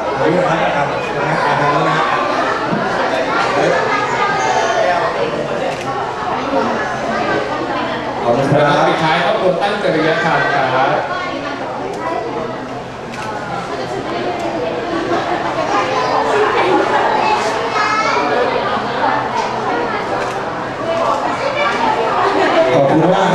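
A young man speaks with animation through a microphone over loudspeakers.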